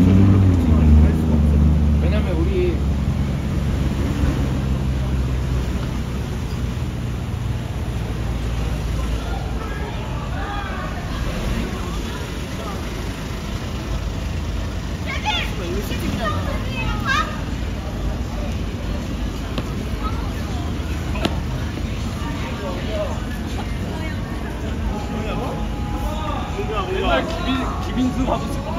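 Traffic rumbles steadily along a busy street outdoors.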